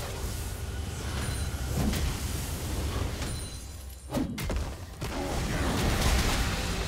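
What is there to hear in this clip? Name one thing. Spell effects crackle and whoosh during a fight in a game.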